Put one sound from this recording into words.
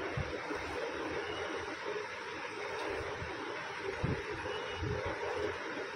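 A comb runs through long hair.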